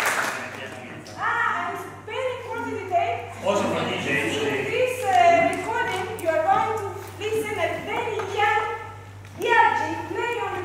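A woman speaks into a microphone over loudspeakers, calmly and with animation.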